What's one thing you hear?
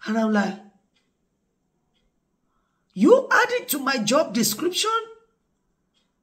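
A middle-aged woman speaks expressively and close up, with pauses.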